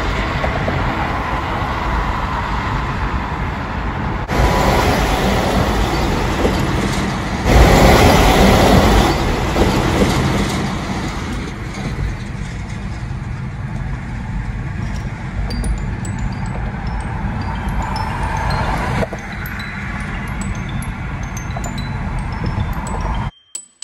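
Tyres roar steadily on a highway, heard from inside a moving car.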